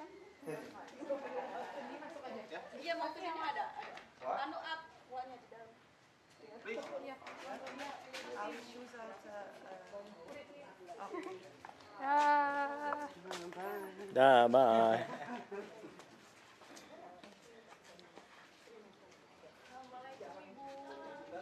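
Several women talk nearby with animation.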